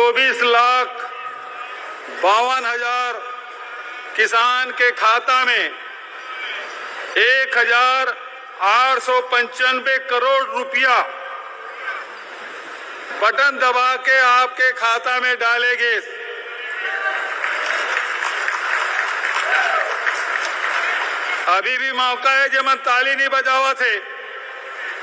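A man speaks forcefully through a loudspeaker, in short bursts.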